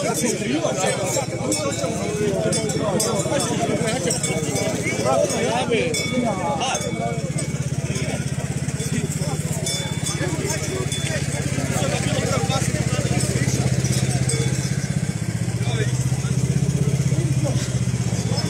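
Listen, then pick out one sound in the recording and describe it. A crowd of men and women chatter outdoors close by.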